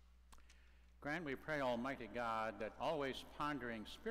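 An older man sings a chant through a microphone in a large echoing hall.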